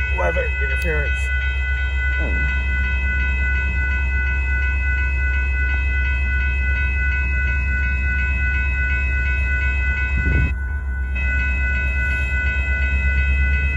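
Crossing warning bells ring steadily and rapidly.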